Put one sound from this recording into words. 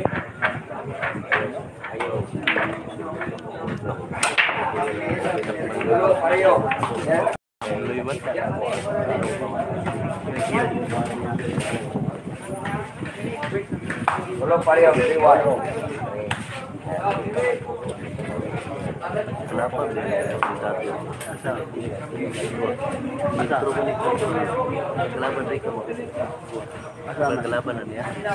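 Men and women chatter nearby in a lively crowd.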